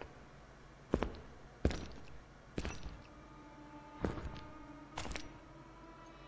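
Heavy footsteps echo on a stone floor in a large hall.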